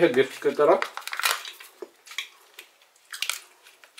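A plastic capsule clicks as it is pried open.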